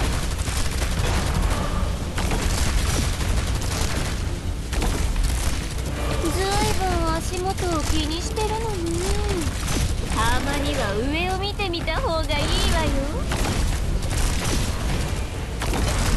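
Laser beams blast and crackle rapidly.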